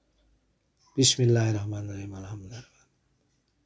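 A man speaks close to a microphone in a drawn-out, chanting voice.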